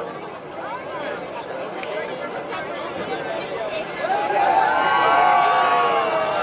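A crowd of men and women chatters and calls out excitedly outdoors nearby.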